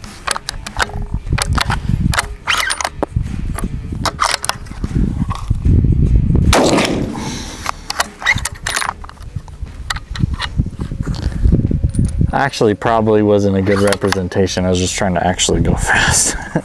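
Metal parts of a rifle click and rattle as they are handled.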